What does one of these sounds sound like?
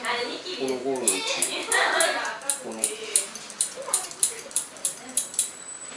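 Scissors snip hair in quick, steady cuts.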